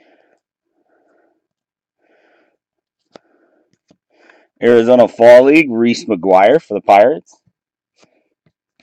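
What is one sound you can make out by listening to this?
Trading cards slide and rustle against each other in hands.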